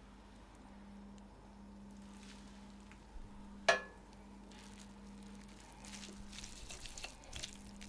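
Noodles slap wetly onto a plate.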